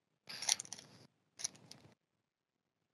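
A foil wrapper crinkles as it is torn open.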